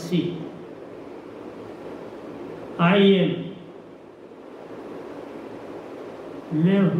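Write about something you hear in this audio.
An elderly man speaks slowly into a microphone, with long pauses.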